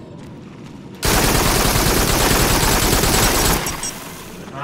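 A gun fires a long, rapid burst.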